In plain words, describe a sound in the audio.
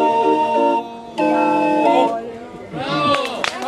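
A barrel organ plays a cheerful tune.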